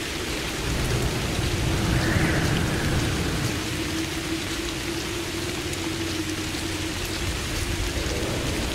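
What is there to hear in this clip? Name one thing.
Rain falls steadily and patters on the ground.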